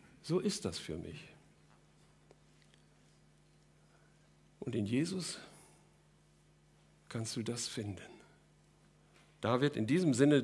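An older man speaks calmly into a microphone in short bursts with pauses.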